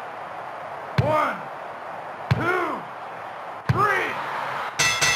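A referee slaps the mat three times for a count.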